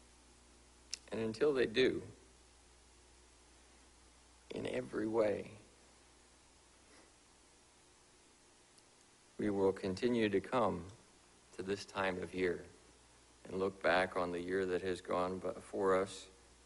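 A man speaks calmly and slowly into a microphone, with long pauses.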